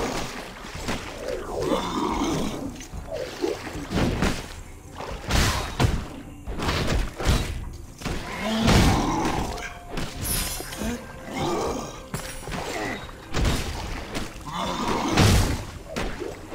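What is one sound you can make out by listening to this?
Magic blasts whoosh and burst.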